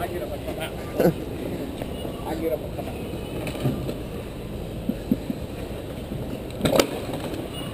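Wooden boxes knock and scrape on brick pavement.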